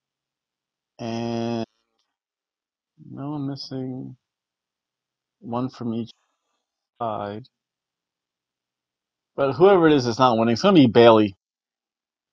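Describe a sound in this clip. A middle-aged man talks close to a microphone, in short bursts with pauses.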